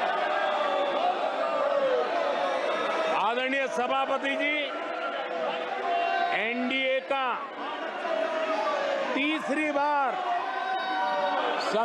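An elderly man speaks steadily and forcefully through a microphone in a large hall.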